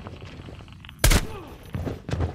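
A single loud gunshot rings out.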